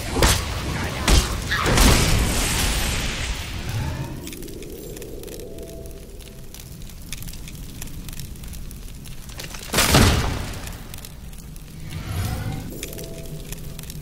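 Magic blasts crackle and boom loudly.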